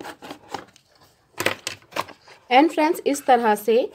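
A cardboard box flap is pulled open with a scrape.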